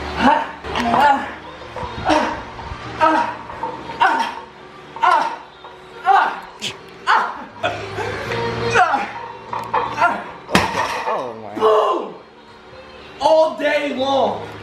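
Weight plates clank on a barbell.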